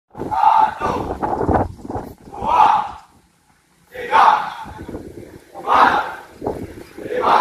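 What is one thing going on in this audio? A large group of young men shout loudly in unison outdoors.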